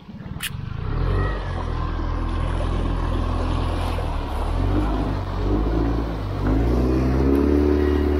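Water splashes and rushes behind a moving boat.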